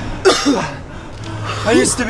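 A man shouts excitedly close by.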